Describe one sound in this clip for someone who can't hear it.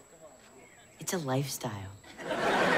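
A teenage boy answers calmly.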